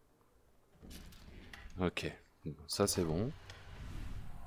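A wooden drawer slides open with a knock.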